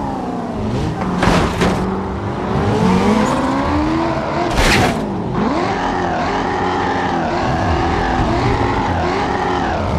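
A car bumps and scrapes against a roadside structure.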